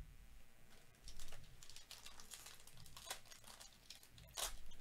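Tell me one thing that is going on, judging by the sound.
A foil card pack crinkles and tears open in gloved hands.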